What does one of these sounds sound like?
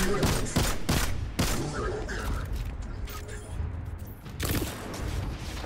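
Gunshots fire in rapid bursts with sharp cracks.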